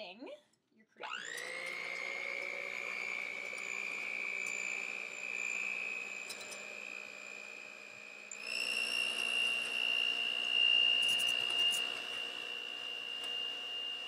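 An electric hand mixer whirs steadily, then speeds up to a higher whine.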